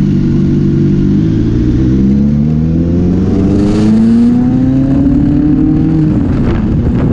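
A motorcycle engine revs up, rising in pitch.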